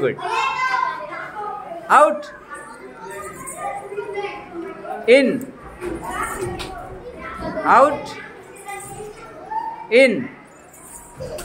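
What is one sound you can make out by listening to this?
Young children chatter and laugh.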